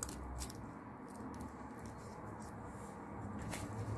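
Paper tape crinkles as it is wrapped around a stem.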